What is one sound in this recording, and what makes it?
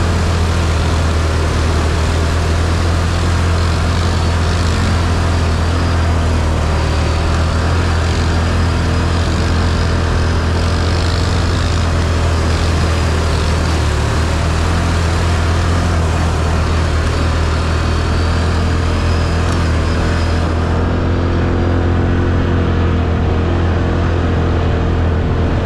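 A quad bike engine rumbles steadily close by.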